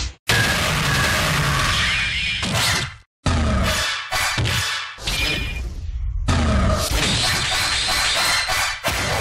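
Loud fighting game effects crash and whoosh in rapid bursts.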